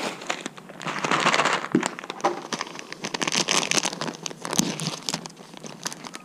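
A plastic bag crinkles in someone's hands.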